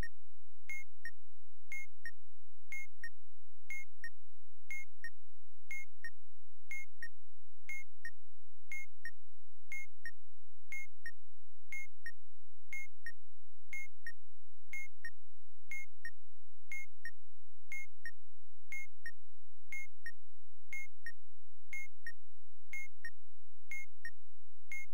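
A bomb timer beeps steadily, about once a second.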